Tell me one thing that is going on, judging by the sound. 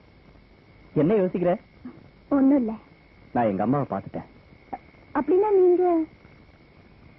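A woman cries out with emotion.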